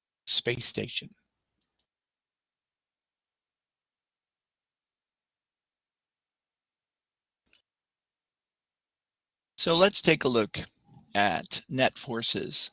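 A middle-aged man speaks calmly into a close headset microphone, with pauses.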